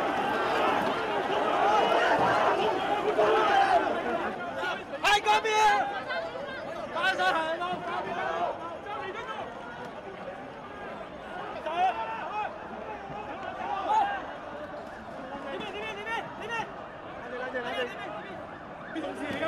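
Many voices murmur in a busy street.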